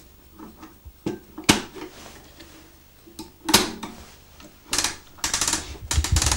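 A key winds a music box with a ratcheting click.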